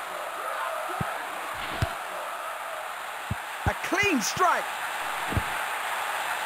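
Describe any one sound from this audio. A football is kicked with short thuds.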